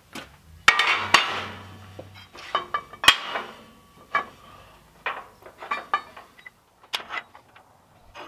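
Metal bars clank and knock against a metal table.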